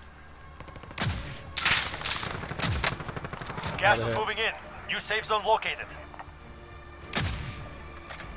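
A rifle fires with a loud, sharp crack.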